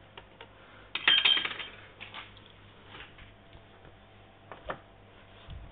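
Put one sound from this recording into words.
Plastic parts rattle and knock as they are handled close by.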